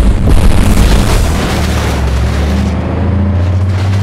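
Metal crashes as a pickup flips off a trailer.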